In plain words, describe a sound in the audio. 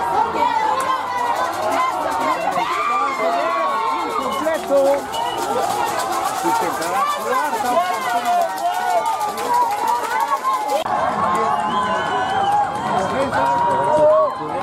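A crowd of spectators chatters and shouts nearby outdoors.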